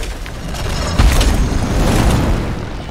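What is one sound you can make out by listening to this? A heavy axe crashes down onto stone.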